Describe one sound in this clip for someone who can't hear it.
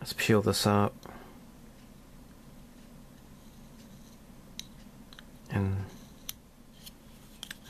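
Small plastic parts click softly as they are handled.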